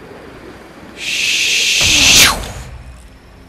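Wind rushes loudly past during a steep dive.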